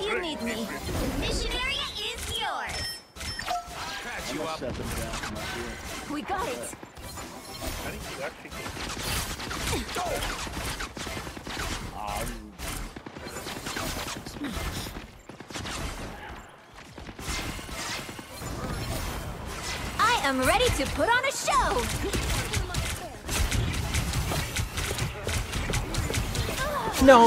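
Rapid gunfire and energy blasts crackle in a fast-paced fight.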